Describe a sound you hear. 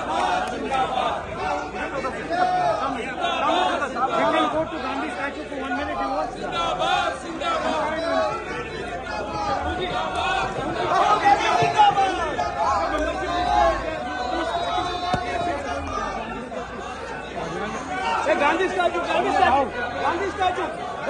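A crowd of men talks and shouts over each other close by.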